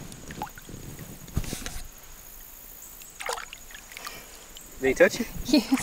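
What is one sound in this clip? Water splashes softly as a hand moves in a shallow stream.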